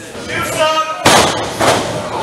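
A wrestler's body slams loudly onto the ring mat.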